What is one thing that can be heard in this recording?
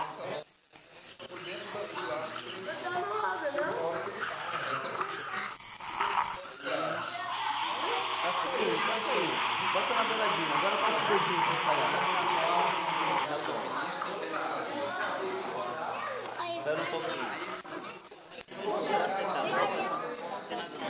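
Children and adults chatter together nearby.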